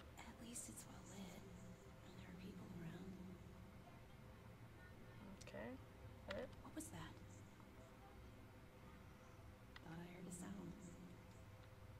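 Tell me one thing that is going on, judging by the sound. A woman speaks softly.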